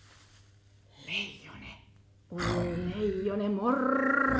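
A woman sings with animation, close by.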